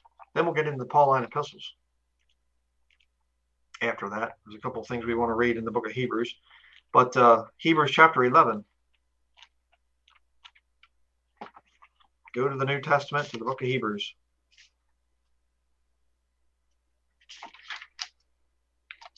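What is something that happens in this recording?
A man speaks calmly and close to a microphone, in short bursts with pauses.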